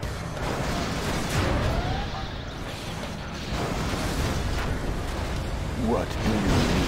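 Explosions boom and rumble in a battle.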